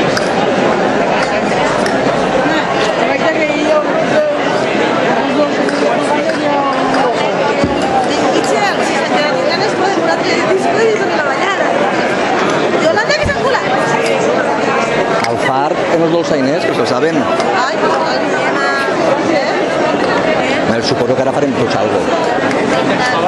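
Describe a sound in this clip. A crowd of men and women chatters all around outdoors.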